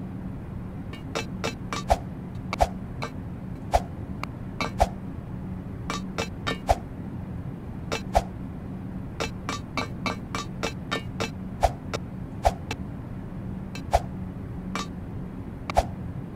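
Fingers tap quickly and repeatedly on a touchscreen.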